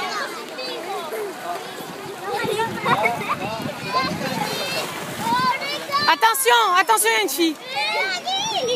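Water splashes as children jump into a pool.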